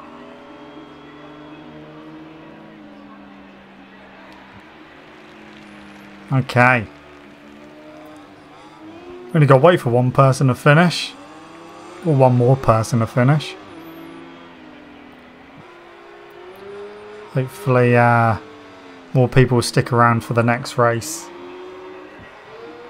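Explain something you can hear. A motorcycle engine roars at high revs, rising and falling in pitch as it races past.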